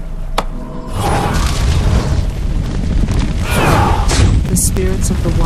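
A burst of magical fire roars and crackles.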